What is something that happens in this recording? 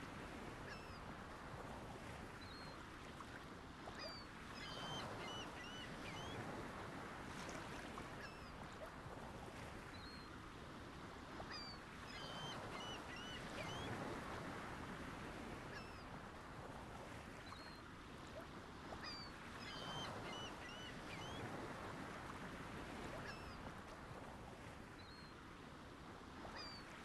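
Dolphins whistle and chirp in short high calls.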